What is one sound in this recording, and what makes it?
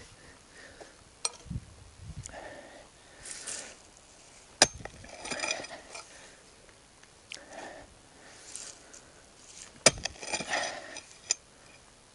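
Loose soil scrapes and crumbles as it is dug.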